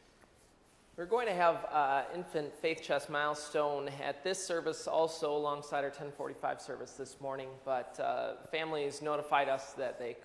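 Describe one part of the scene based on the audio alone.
A man speaks clearly through a microphone in a large echoing hall.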